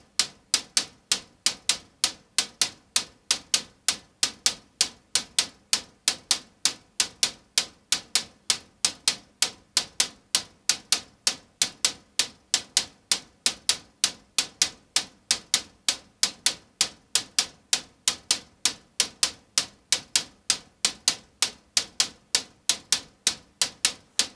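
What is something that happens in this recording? A modular synthesizer plays a fast, steady pattern of sharp, bright clicking notes.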